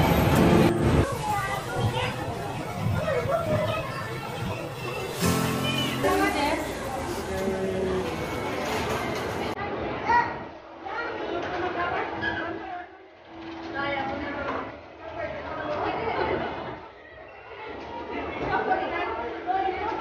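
Crowd chatter echoes in a large indoor hall.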